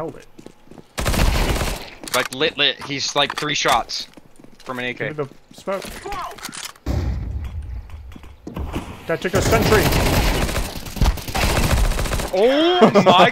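A submachine gun fires in rapid bursts.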